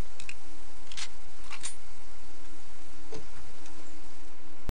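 A wooden door clicks and creaks open.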